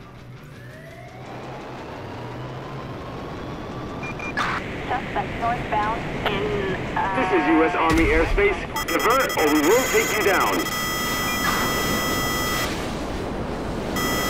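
A jet engine roars loudly at full thrust.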